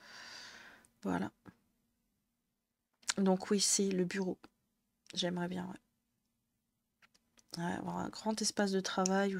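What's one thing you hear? A young woman talks calmly into a close microphone.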